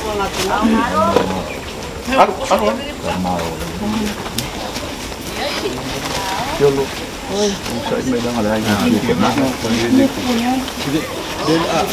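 A crowd of women and men talk and call out nearby, outdoors.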